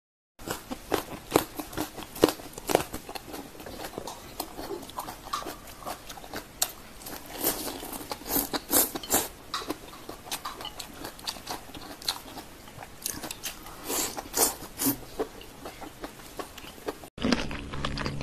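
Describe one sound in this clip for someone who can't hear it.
A young woman chews sticky sauced meat close to a microphone.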